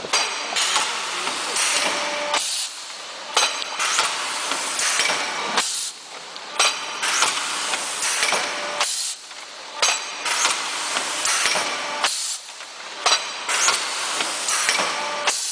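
Bursts of air hiss loudly every few seconds.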